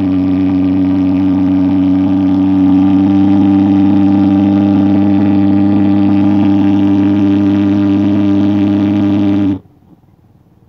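A fogging machine's engine roars loudly and steadily, then cuts off.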